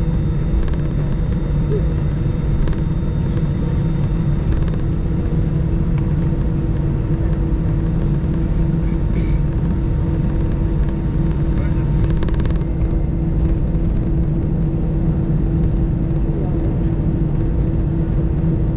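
Airliner wheels rumble over the runway.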